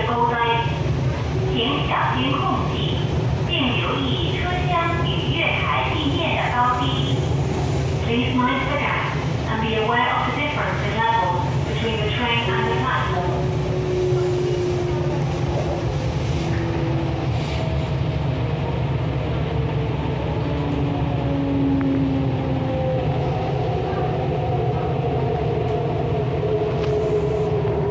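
An electric train rumbles along the track, heard from inside a carriage.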